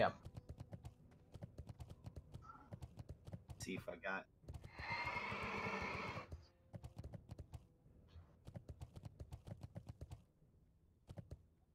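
Hooves clop quickly and steadily as a mount gallops.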